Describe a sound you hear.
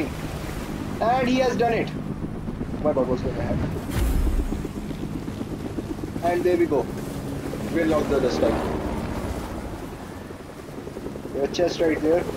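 Water splashes as a swimmer paddles through it.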